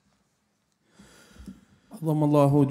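A man begins chanting loudly through a microphone.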